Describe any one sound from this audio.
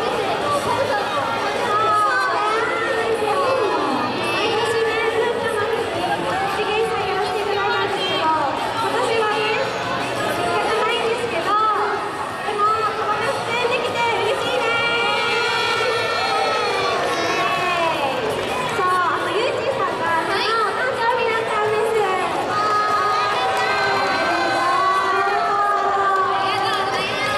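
Pop music plays loudly through loudspeakers.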